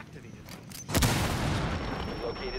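A breaching charge blasts through a wooden wall.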